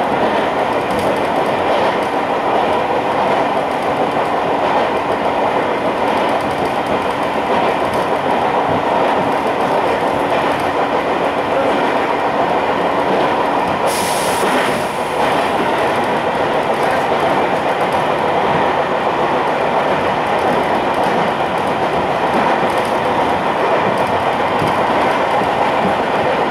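A train rumbles steadily along the tracks, heard from inside the carriage.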